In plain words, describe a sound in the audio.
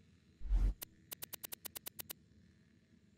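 A video game menu ticks quickly as items are scrolled through.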